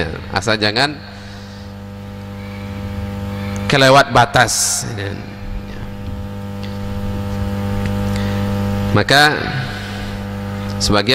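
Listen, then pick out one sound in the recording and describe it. A man speaks in a steady, measured voice through a microphone, in an echoing room.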